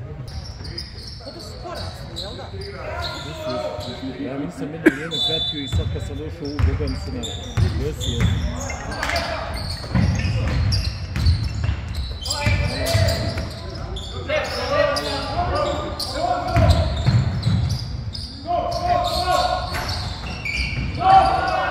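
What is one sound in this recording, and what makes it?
Young players shout to each other across an echoing hall.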